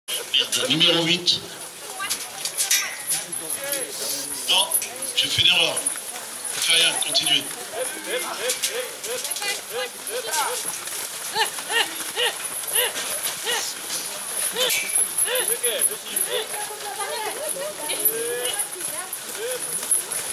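A crowd of people murmurs in the distance outdoors.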